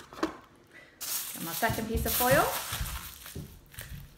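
Paper crinkles and rustles in hands.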